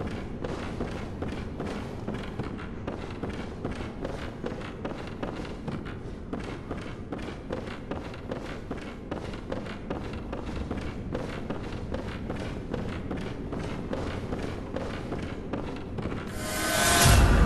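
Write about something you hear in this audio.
Quick footsteps thud and clatter across wooden boards.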